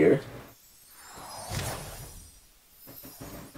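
A soft whoosh swells and fades.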